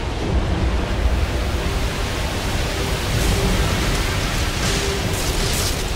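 A waterfall rushes and roars steadily.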